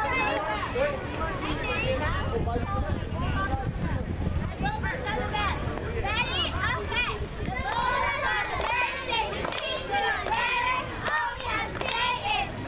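Young girls chatter and shout excitedly close by, outdoors.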